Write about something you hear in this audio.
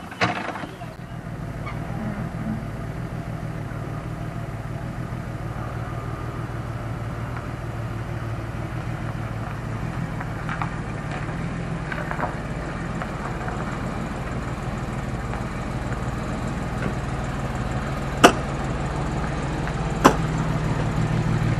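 A car engine rumbles steadily and grows louder as the car drives closer.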